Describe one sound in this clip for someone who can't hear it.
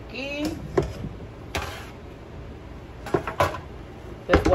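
Potato pieces drop into a pot.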